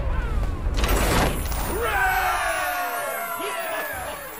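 A bright triumphant fanfare with chiming tones plays.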